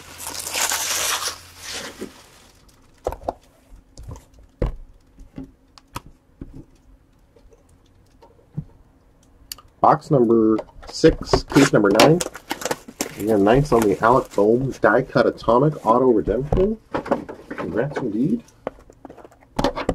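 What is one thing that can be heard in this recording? Cardboard boxes rustle and tap as hands handle them.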